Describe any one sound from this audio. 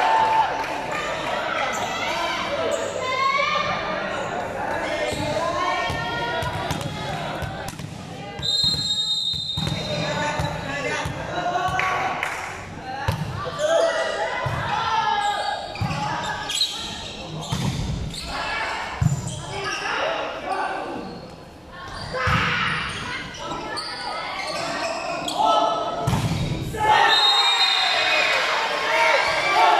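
A crowd of young people chatters and cheers in a large echoing hall.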